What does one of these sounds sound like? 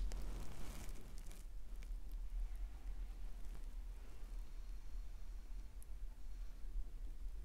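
A paintbrush brushes softly against canvas.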